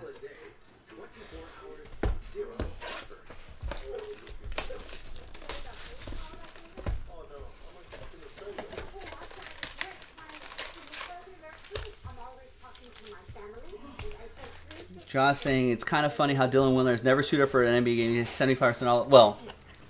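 Cardboard and foil packs rustle and tap as hands handle them.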